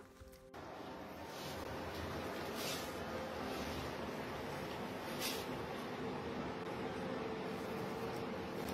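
Puppies whimper and yip softly.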